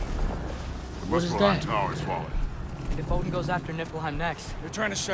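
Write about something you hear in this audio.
A man speaks in a deep, calm voice.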